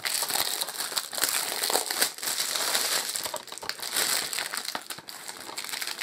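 Plastic wrapping crinkles and rustles as it is peeled off.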